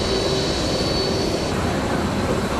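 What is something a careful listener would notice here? A jet airliner roars as it climbs away.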